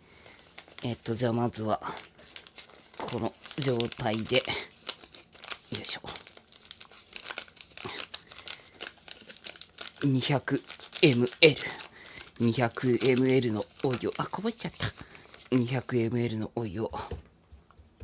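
A foil pouch crinkles and rustles.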